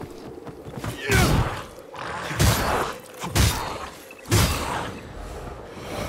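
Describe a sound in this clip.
A blade swings and strikes a creature with sharp impacts.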